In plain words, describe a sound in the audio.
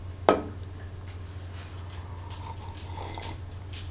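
A man sips from a mug.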